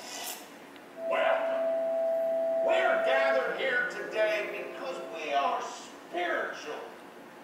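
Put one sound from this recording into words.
Music plays loudly through loudspeakers in a large hall.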